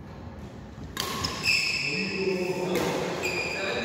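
Rackets smack a shuttlecock back and forth in an echoing hall.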